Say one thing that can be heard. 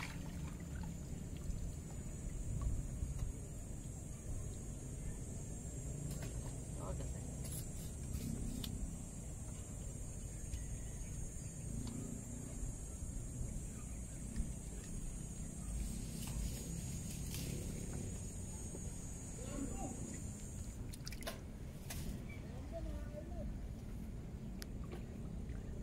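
Water splashes and ripples around a man wading in a river.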